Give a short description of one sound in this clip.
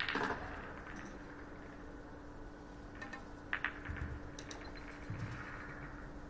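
Billiard balls click together as they are racked.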